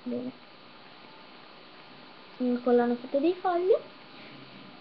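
A young girl speaks close by in a high, animated voice.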